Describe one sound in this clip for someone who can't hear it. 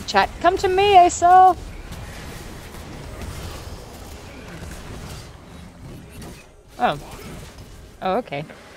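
A young woman speaks animatedly into a microphone, close by.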